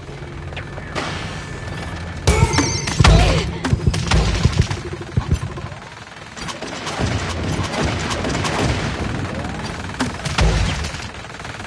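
Energy guns fire in loud bursts with sharp blasts.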